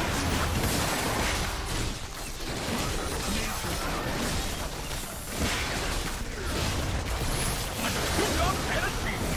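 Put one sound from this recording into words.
Magical combat effects crackle and burst in a game battle.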